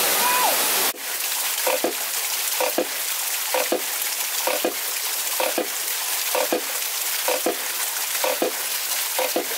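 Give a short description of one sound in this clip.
A small water wheel turns and knocks on tin cans in a steady rhythm.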